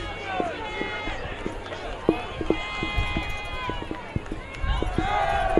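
Football players' pads clash and thud as they collide.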